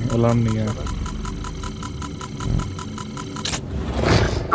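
An electronic scanner hums with rapid, even pulses.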